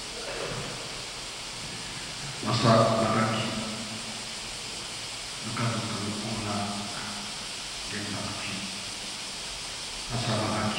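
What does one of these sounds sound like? An elderly man speaks slowly and calmly into a microphone, heard through loudspeakers in a large echoing hall.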